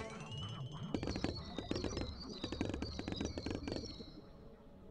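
Game bubbles pop in quick bursts of chiming clicks.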